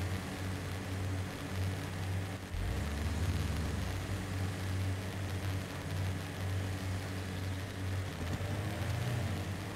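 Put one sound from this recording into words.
Tyres crunch over rough rock.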